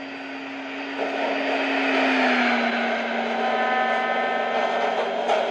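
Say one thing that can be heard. An electric train hums and whines as it slowly pulls away.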